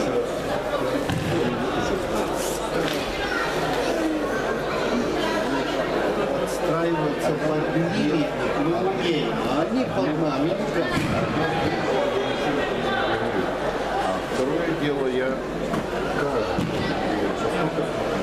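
Judoka thud onto judo mats as they are thrown.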